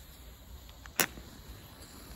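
A match strikes with a sharp scrape.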